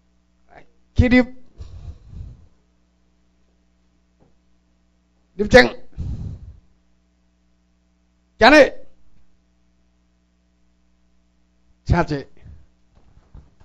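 A man speaks through a microphone in short loud bursts in an echoing room.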